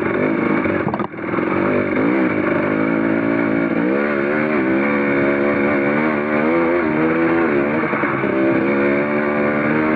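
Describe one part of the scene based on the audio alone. A dirt bike engine revs hard and changes pitch as it climbs close by.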